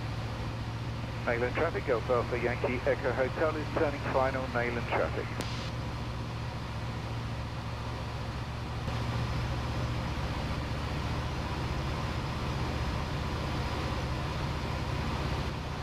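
A light aircraft's engine drones steadily inside a small cockpit.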